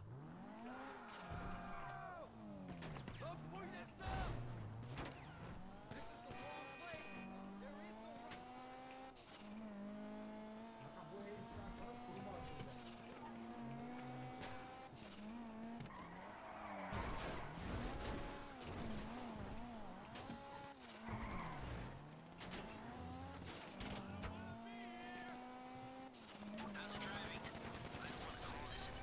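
A car engine roars and revs up and down as the car speeds along.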